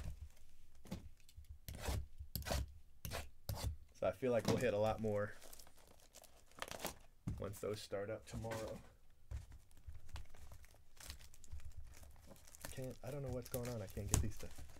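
Plastic wrap crinkles as a box is handled.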